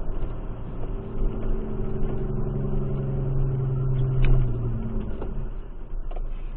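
A vehicle engine revs up and then eases off.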